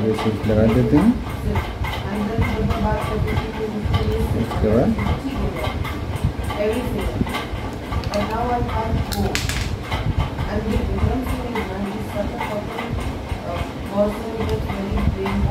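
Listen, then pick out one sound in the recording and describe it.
Small electronic parts click softly against a circuit board.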